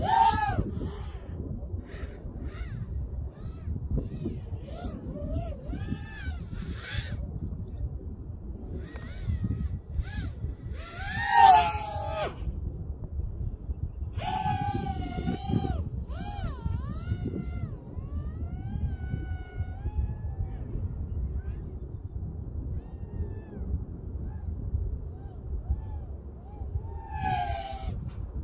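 A small drone's motors whine loudly, rising and falling in pitch as it speeds up and slows.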